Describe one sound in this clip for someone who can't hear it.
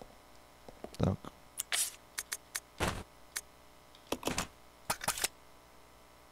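Short electronic menu clicks and beeps sound.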